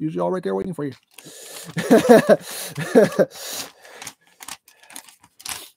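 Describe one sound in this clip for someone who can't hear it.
A paper booklet rustles and crinkles as its pages are handled.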